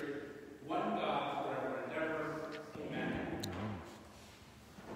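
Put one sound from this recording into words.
An elderly man reads aloud through a microphone in an echoing hall.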